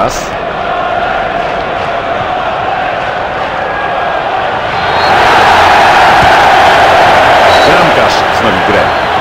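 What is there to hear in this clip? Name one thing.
A stadium crowd roars steadily and swells louder.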